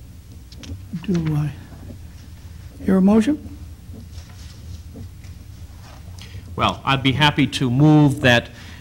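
A man speaks through a microphone in a large room, in short bursts.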